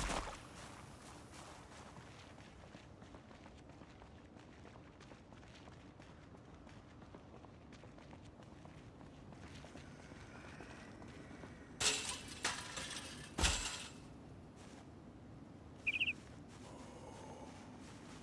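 Footsteps patter softly on hard ground.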